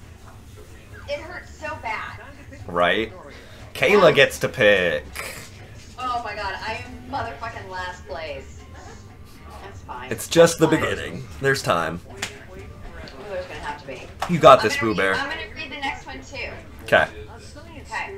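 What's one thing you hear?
A group of young men talk and laugh over an online call.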